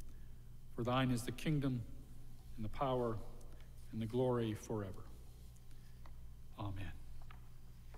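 An elderly man speaks slowly and calmly into a microphone in a reverberant hall.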